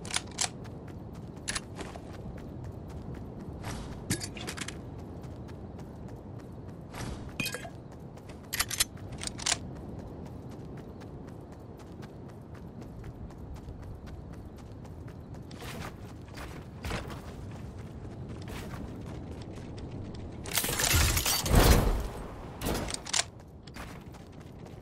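Footsteps run across grass in a video game.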